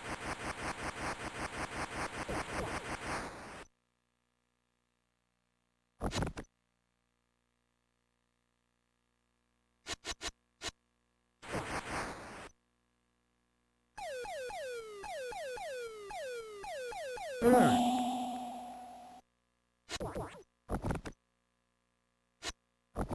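Retro video game sound effects beep and buzz in short bursts.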